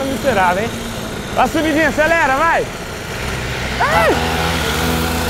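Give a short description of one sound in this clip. Small motorbike engines rev up and down sharply.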